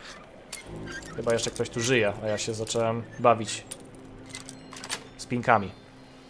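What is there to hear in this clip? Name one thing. A lock pick scrapes and clicks inside a lock.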